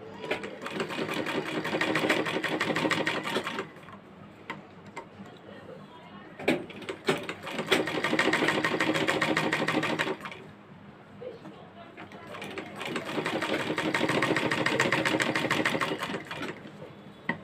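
A sewing machine runs in fast bursts, stitching with a rapid rattle.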